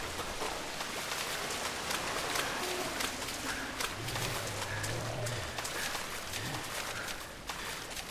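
Water splashes steadily as someone wades through a shallow stream.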